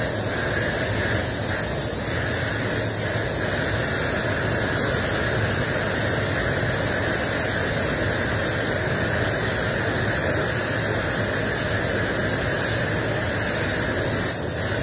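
A spray gun hisses steadily.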